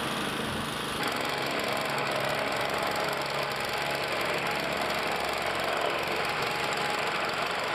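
A plate compactor engine runs with a loud steady rattling drone.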